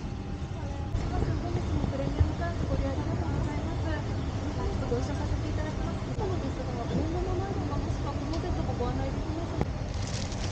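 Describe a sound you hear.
A young woman speaks softly and politely nearby.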